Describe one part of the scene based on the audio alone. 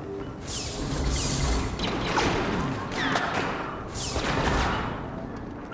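A blaster rifle fires.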